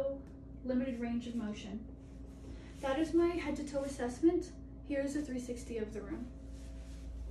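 A young woman speaks calmly and clearly nearby.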